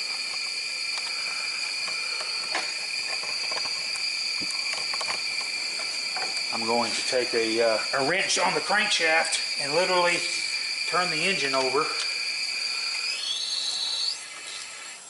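Compressed air hisses and whistles steadily through a pressure tester.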